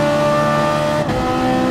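A race car engine briefly drops in pitch as it shifts gear.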